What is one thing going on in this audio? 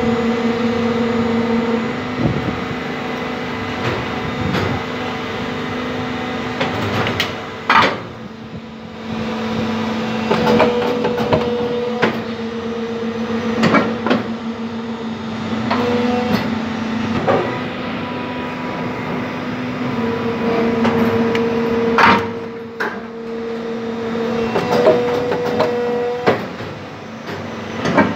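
An injection moulding machine hums with a steady hydraulic whine.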